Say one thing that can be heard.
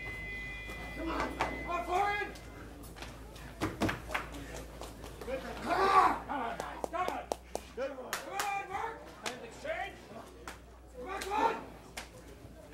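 Men shout loudly to each other nearby.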